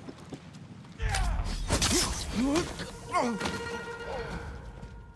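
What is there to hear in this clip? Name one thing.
A man groans and gasps while being choked.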